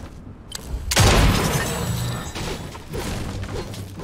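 A bat smashes against a bush with a heavy thud.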